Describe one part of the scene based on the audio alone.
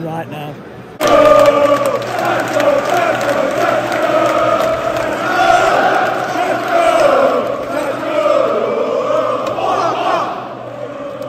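A large crowd of men chants loudly outdoors in a stadium.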